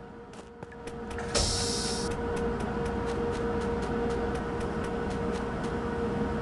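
Quick footsteps tap.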